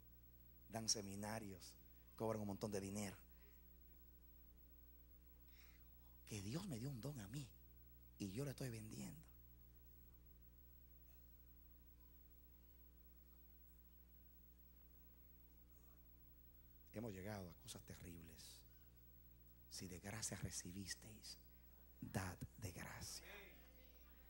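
A middle-aged man speaks with animation into a microphone, in bursts with pauses, heard through loudspeakers.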